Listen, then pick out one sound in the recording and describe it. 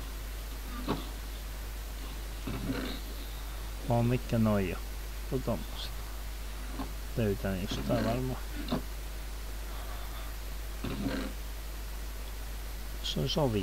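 A wooden chest creaks open and thumps shut.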